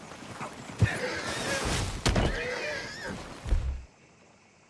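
A man speaks nearby.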